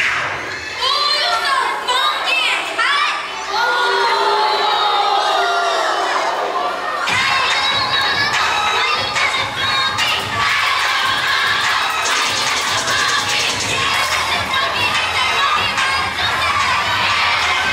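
A large crowd cheers and screams in an echoing hall.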